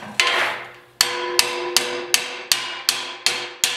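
Metal taps sharply in quick repeated knocks.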